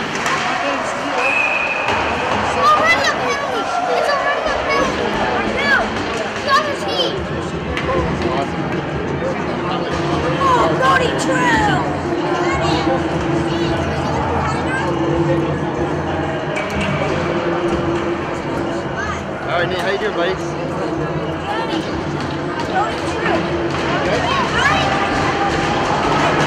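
Hockey sticks clack against the puck and the ice.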